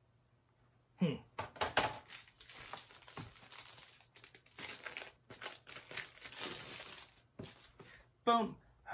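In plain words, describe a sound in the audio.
Plastic sleeves rustle and scrape as someone sorts through them.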